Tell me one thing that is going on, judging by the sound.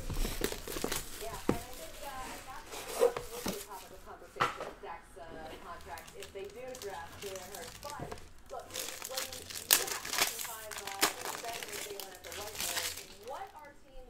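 Plastic wrapping crinkles as it is torn off.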